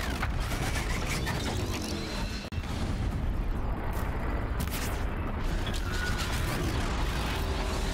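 Explosions burst loudly.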